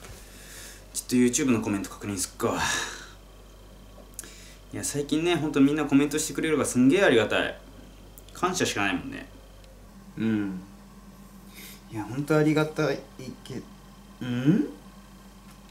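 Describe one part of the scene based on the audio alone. A young man speaks nearby in a low, casual voice, in short bursts.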